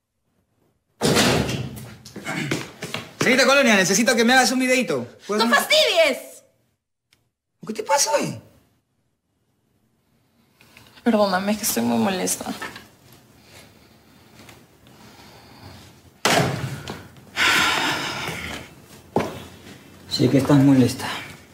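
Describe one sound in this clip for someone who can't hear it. A young man speaks with feeling, close by.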